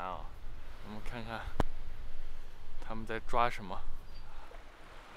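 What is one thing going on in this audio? Small waves lap softly at a sandy shore.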